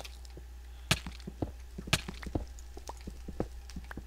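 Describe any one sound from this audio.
A pickaxe chips at stone with quick knocks.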